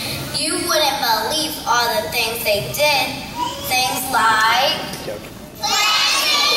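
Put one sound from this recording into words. A young child speaks with animation through a loudspeaker in a large echoing hall.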